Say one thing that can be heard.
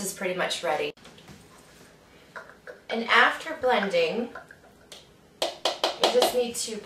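Powder pours softly into a blender jar.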